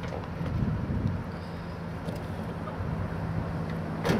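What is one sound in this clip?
A van door opens.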